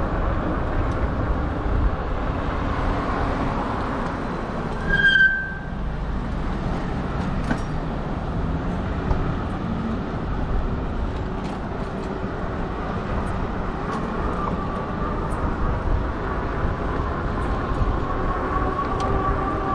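Bicycle tyres hum on pavement.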